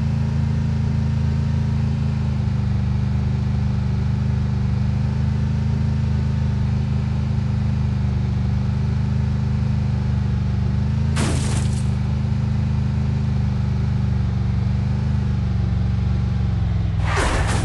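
A game's pickup truck engine drones as the truck drives.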